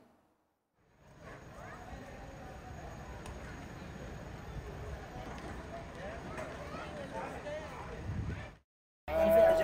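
A crowd of people murmurs and chatters in the background outdoors.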